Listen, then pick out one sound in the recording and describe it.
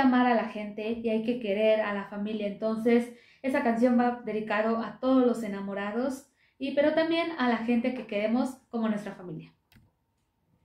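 A young woman sings into a microphone, close by.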